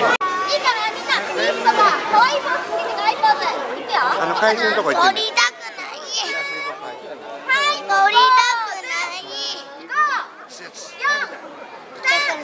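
Young children chatter and call out in high voices.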